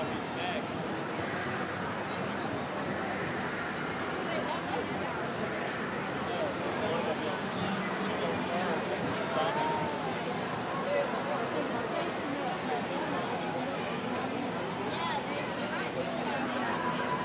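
A large outdoor crowd chatters and murmurs steadily.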